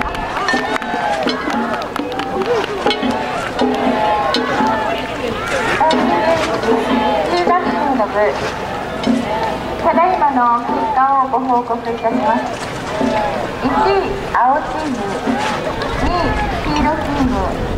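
A group of rowers chant loudly in rhythm.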